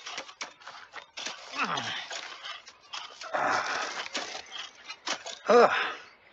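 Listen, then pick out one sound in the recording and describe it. A man breathes heavily with effort.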